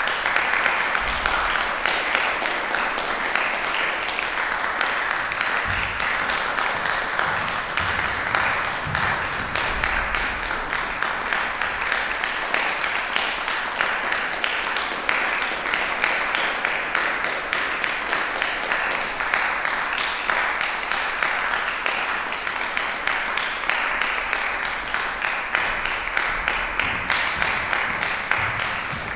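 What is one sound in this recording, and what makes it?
An audience claps steadily in a large, echoing hall.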